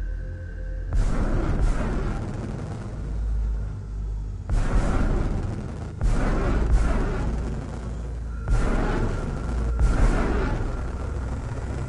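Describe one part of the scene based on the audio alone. Loud rumbling blasts burst out several times as rocks break apart.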